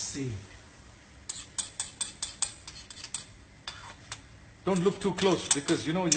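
Beaten egg sizzles in a hot pan.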